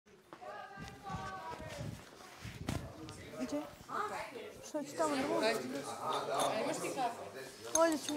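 Young women talk and chatter with animation.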